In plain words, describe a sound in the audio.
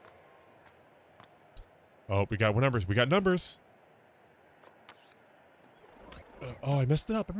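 Hockey sticks click against a puck on ice.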